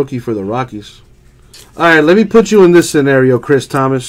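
A plastic card sleeve crinkles as a card slides into it.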